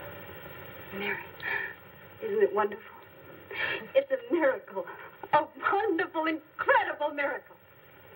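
An older woman speaks excitedly.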